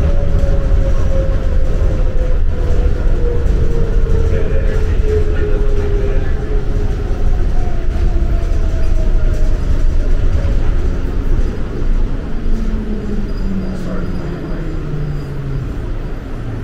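A train rumbles steadily along its track.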